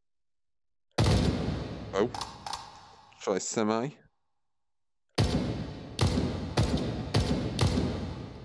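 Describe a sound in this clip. A rifle fires shots in quick bursts with a sharp echo.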